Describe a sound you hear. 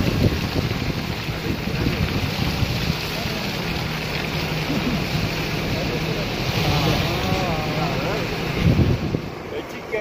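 Tyres crunch and hiss over snow and slush.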